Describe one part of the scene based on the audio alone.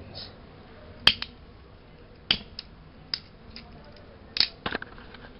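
A lighter clicks several times.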